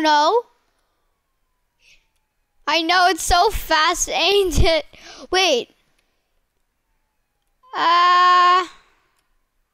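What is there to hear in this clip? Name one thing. A young boy talks with animation close to a headset microphone.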